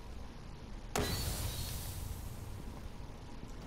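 A loud explosion bursts and fades into a rushing hiss.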